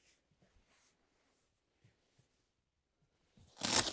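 Footsteps cross a floor close by.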